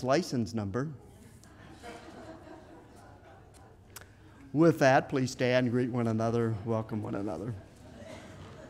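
A middle-aged man speaks into a microphone in an echoing hall.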